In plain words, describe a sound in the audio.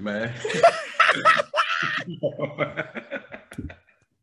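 A second man laughs heartily over an online call.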